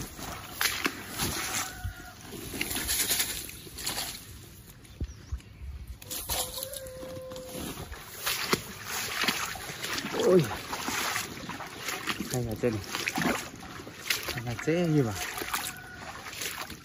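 Footsteps swish and rustle through wet grass up close.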